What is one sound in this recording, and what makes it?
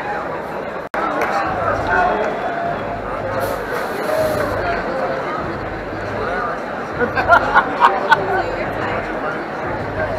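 A crowd murmurs and chatters in the hall.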